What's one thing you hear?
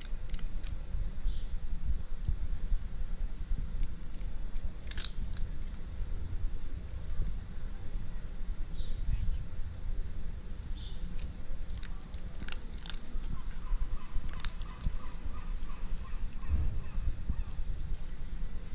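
A cat crunches dry food up close.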